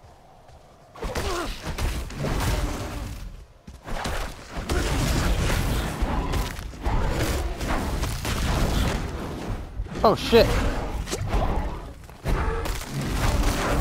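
Weapons strike and slash at monsters in quick, heavy blows.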